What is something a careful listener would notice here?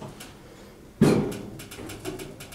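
An elevator door slides shut with a thud.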